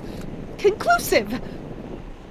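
An elderly woman speaks in a weary, drawn-out voice.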